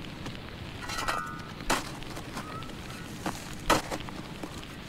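A shovel scrapes and thuds into dry earth.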